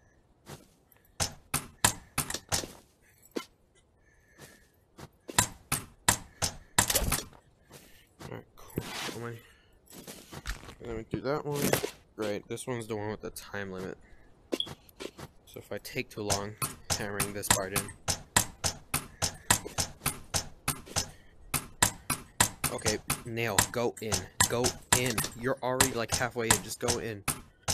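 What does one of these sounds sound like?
Rapid hard knocks ring out as something is struck again and again.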